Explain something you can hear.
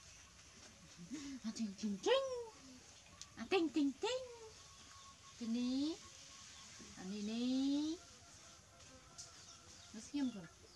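A young woman talks softly and sweetly up close.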